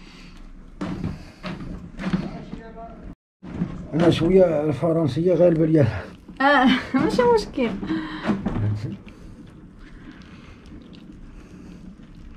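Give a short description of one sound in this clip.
Wet clay squelches softly under hands.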